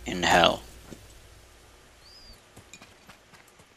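Footsteps crunch on dry grass.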